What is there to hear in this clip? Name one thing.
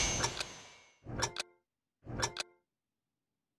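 Short electronic beeps count down, one each second.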